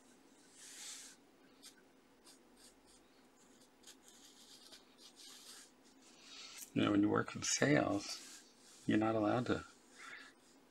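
A pencil scratches softly on paper.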